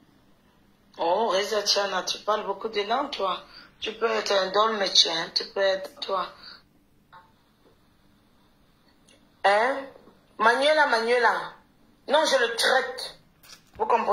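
A woman speaks close by in a calm, conversational voice.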